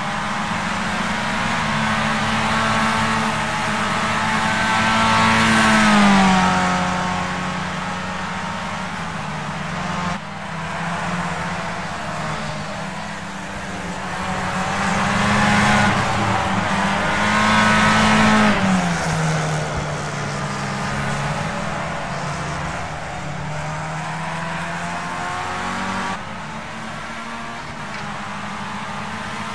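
A racing car engine whines steadily, rising in pitch and dropping sharply as gears shift.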